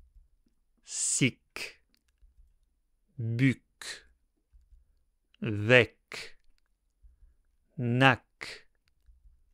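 A man pronounces short syllables one at a time, slowly and clearly, close to a microphone, with pauses between them.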